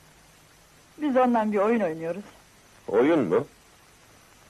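A young woman answers in a soft, gentle voice, close by.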